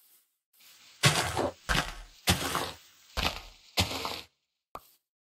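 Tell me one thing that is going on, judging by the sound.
Leaves rustle and break in quick, sharp bursts.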